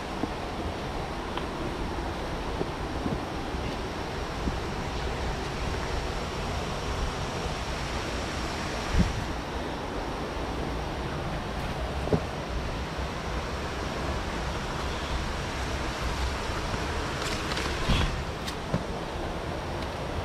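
Footsteps scrape and thud on rocky ground.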